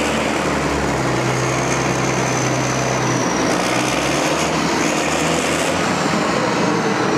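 Ore pours and rattles from a loader bucket into a rail wagon.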